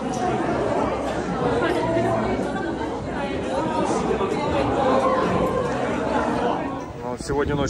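A crowd of young people chatters nearby in an echoing hall.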